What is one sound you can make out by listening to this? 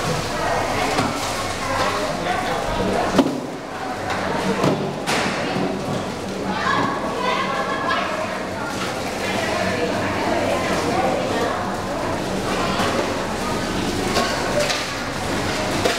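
Plastic crates and baskets knock and clatter.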